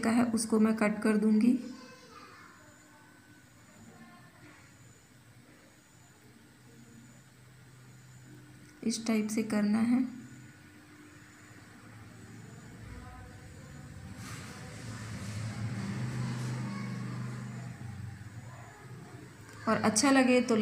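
A woman speaks calmly nearby.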